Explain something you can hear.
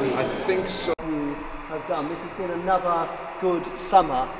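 A man talks to a group in a large echoing hall.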